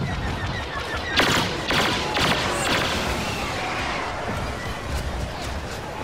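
An explosion bursts nearby.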